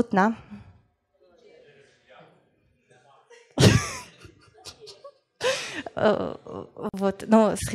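A woman speaks with animation through a microphone in a large room.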